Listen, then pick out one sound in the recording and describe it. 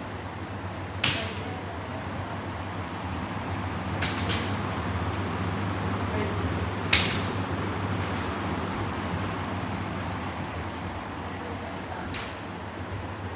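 Bamboo swords strike armour with sharp cracks in an echoing hall.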